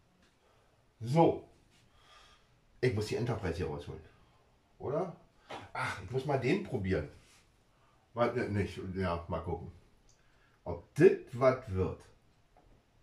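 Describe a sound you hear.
A middle-aged man talks calmly, close by.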